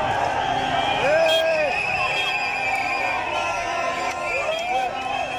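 A man shouts close by.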